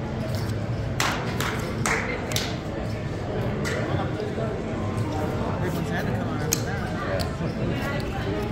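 Casino chips click and clatter on a felt table.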